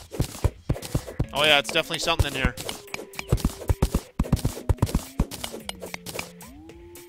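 Game digging sounds knock rapidly and repeatedly.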